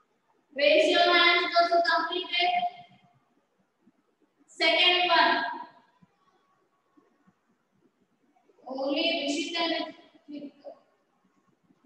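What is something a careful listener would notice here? A young woman speaks clearly and calmly close by, in short phrases with pauses.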